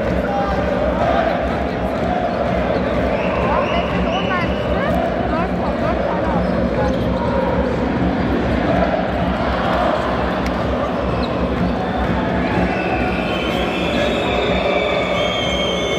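A large crowd cheers and chants loudly in a big echoing arena.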